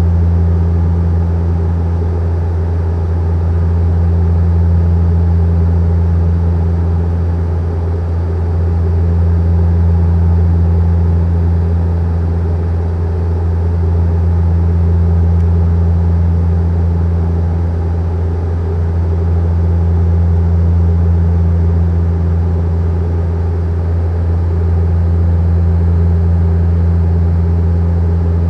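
A jet airliner's engines drone steadily from inside the cabin.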